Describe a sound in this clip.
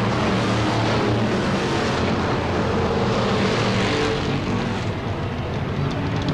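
Loud race car engines roar steadily as the cars speed past.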